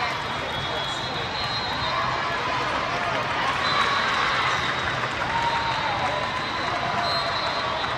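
A crowd chatters loudly in a large echoing hall.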